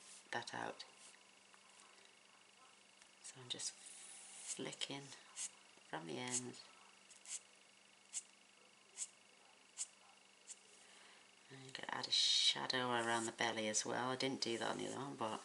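A marker taps and scratches softly on paper.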